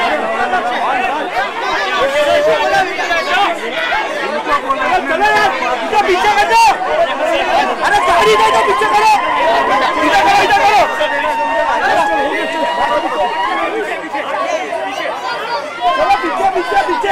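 A large crowd shouts and cheers loudly close by.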